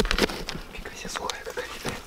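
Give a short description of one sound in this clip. Loose dirt falls and patters into a hole.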